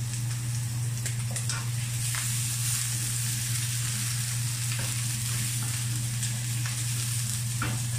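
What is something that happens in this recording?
A spatula scrapes and taps against a frying pan.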